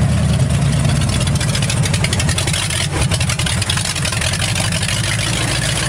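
An engine rumbles low and steady.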